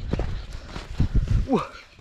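A boy dives onto the sand with a heavy thump.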